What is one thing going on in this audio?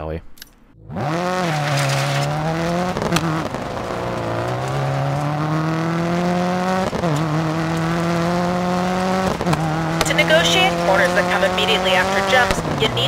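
A car engine revs hard and shifts up through the gears.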